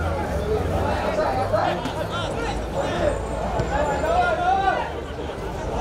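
Young men shout across an open field.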